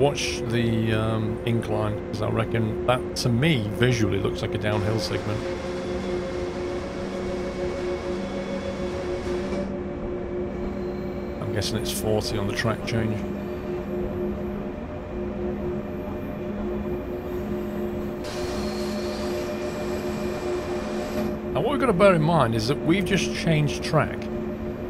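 An electric locomotive hums steadily as it rolls along the rails.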